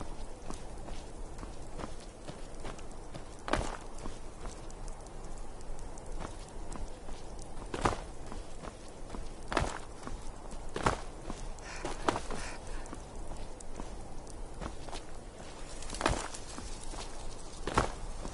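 Heavy footsteps crunch over rocky ground at an even pace.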